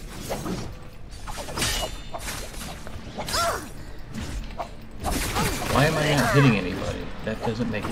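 A sword swishes and clangs in quick strikes.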